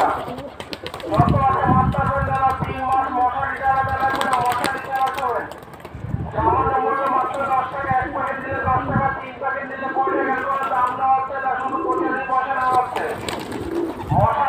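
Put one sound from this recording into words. Pigeons flap their wings loudly as they take off and land.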